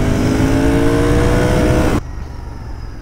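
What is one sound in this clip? A motorcycle engine revs loudly.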